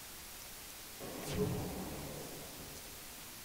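A heavy explosion rumbles.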